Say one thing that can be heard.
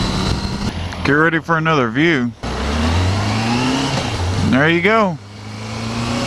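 A motorcycle engine revs up sharply in quick bursts.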